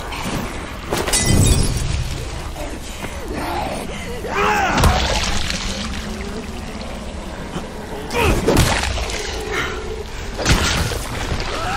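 A heavy metal weapon thuds into a body several times.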